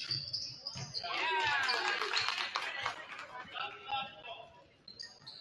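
Young players call out to each other in a large echoing gym.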